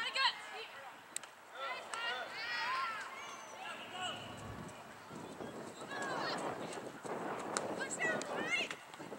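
Young women and spectators shout and call out across an open outdoor field.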